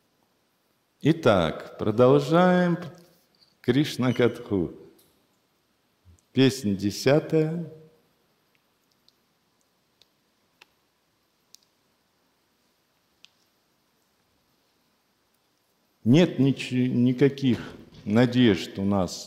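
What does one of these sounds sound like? An elderly man speaks calmly and slowly, close to a microphone, in short bursts with long pauses.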